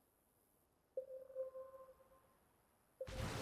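A short electronic chime rings out and fades.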